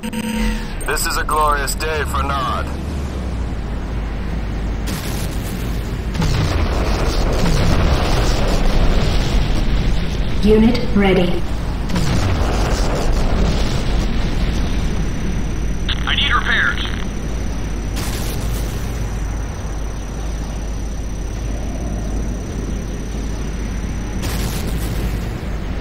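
Electricity crackles and buzzes around a vehicle.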